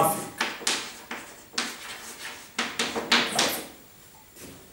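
Chalk scratches and taps across a blackboard.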